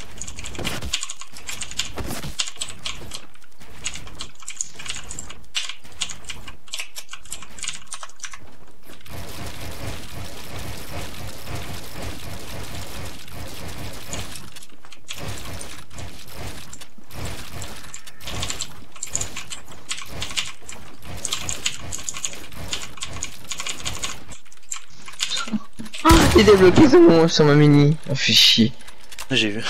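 Keyboard keys clack rapidly under quick typing.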